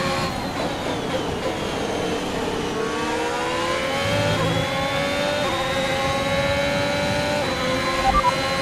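A racing car engine whines at high revs, rising and dropping with gear changes.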